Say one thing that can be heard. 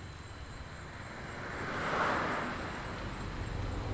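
A motor scooter approaches with its engine humming.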